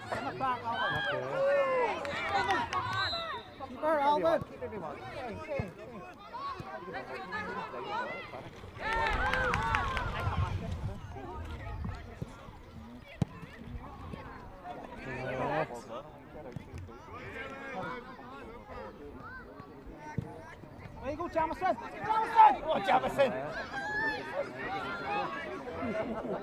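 Young players shout to each other outdoors.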